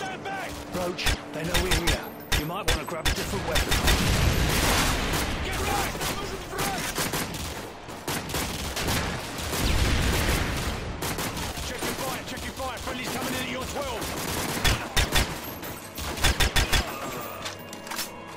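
Rifle shots ring out in quick bursts.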